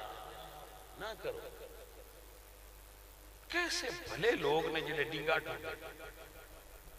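A man speaks with animation through a microphone, with echo.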